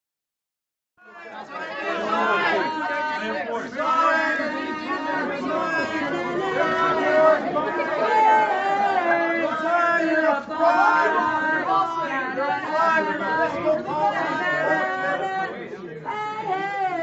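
A crowd of men and women shout questions over each other close by.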